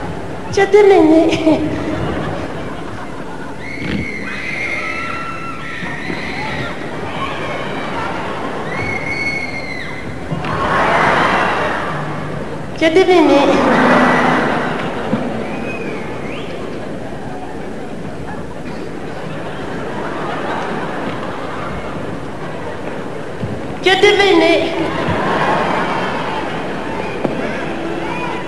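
A crowd screams and cheers.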